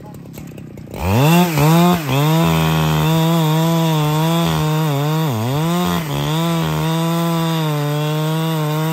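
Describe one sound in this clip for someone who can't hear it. A chainsaw roars at high revs, cutting into a tree trunk, its pitch dipping under load.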